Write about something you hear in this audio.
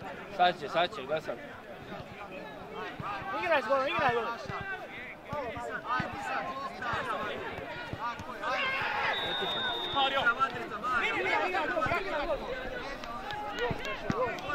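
Men shout and call out to each other across an open field outdoors.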